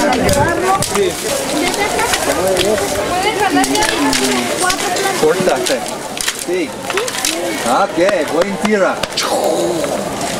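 Dry canes rustle and snap.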